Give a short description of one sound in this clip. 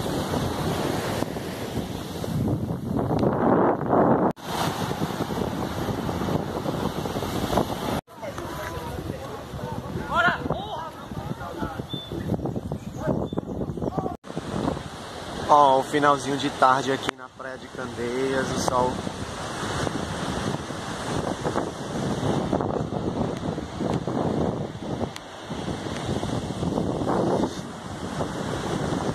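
Wind blows strongly outdoors.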